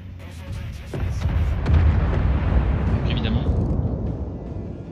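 Heavy ship guns fire with deep, rumbling booms.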